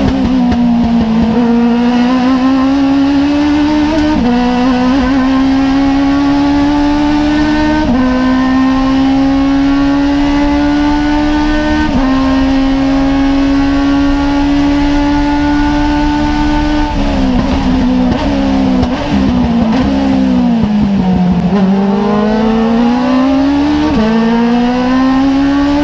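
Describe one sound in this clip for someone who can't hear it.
A race car engine revs hard and shifts up through the gears, heard from inside the cockpit.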